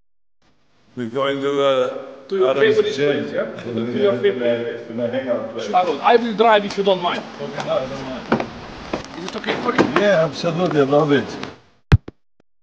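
A second elderly man answers with animation.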